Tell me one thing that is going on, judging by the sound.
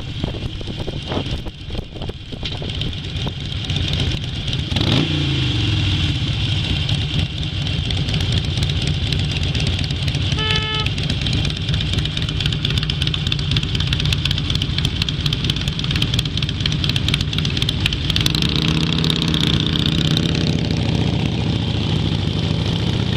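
A motorcycle engine rumbles steadily up close while riding.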